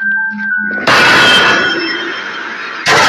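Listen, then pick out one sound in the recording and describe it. A ghostly figure lets out a loud, harsh shriek.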